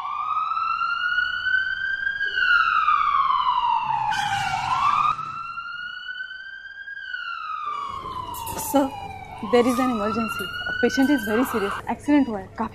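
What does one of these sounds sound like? An ambulance siren wails loudly, rising and falling.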